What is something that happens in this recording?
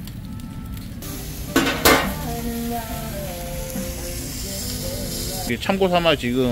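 Fish sizzles on a hot grill.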